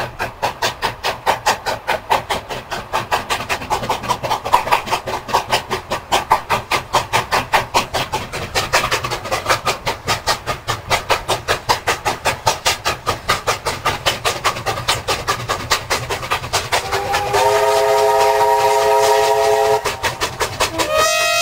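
A steam locomotive chuffs hard and fast, close by.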